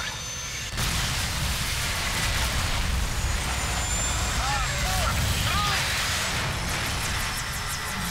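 A deep explosion rumbles loudly.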